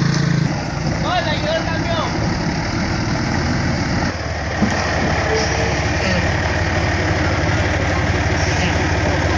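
A heavy truck's diesel engine rumbles steadily nearby.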